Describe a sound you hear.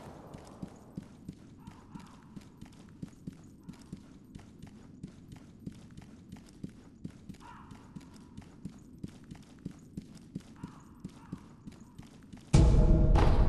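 Footsteps patter quickly on wooden boards.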